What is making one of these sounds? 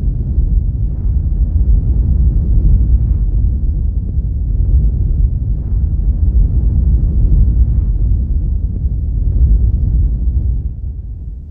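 Wind blows in low gusts across open ground.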